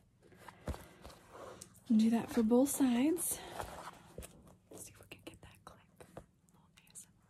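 Stiff paper rustles and crinkles in hands.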